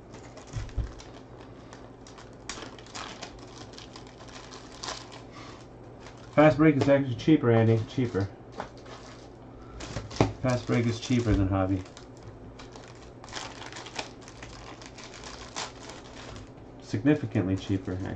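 Plastic wrap crinkles as hands tear open a pack.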